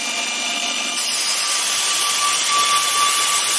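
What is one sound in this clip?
A steel bar grinds against a sanding belt with a harsh rasp.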